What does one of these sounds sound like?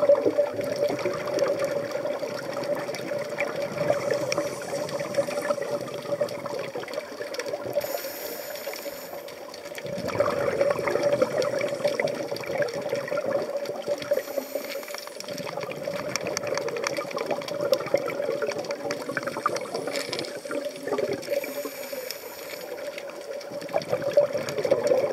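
Exhaled bubbles from a scuba regulator gurgle and rumble underwater.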